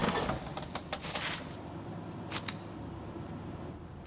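A metal locker door clangs open.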